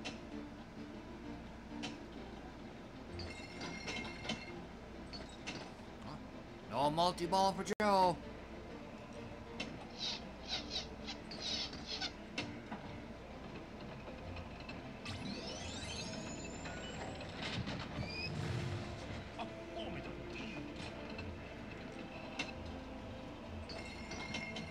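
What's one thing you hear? A pinball ball clacks against bumpers and flippers.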